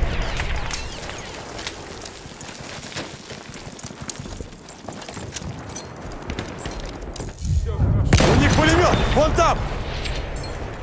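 Rifle shots crack sharply again and again.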